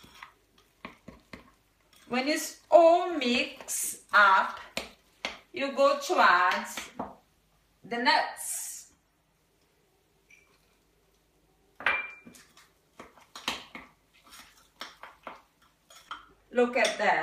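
A spoon clinks and scrapes against a mug.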